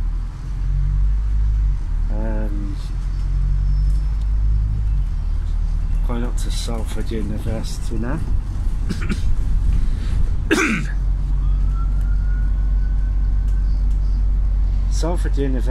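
A bus engine rumbles steadily from inside while driving.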